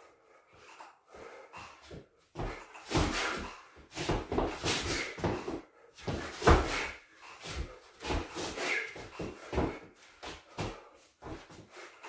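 Sneakers shuffle and scuff on a hard floor in an echoing room.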